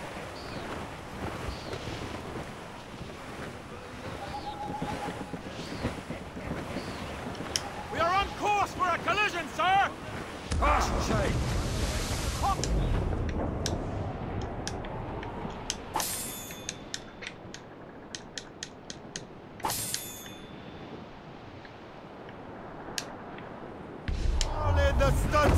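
Wind and sea waves rush steadily around a sailing ship.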